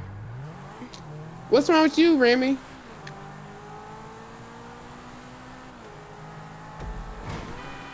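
A sports car engine roars at high speed.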